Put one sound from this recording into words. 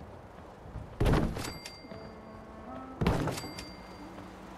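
A metal locker clanks into place with a sharp ringing thud.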